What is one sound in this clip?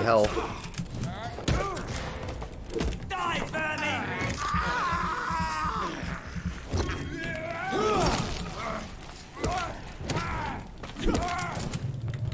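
Weapons strike and clash in a close fight.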